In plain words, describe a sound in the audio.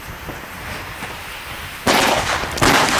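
A firecracker fuse hisses and sputters.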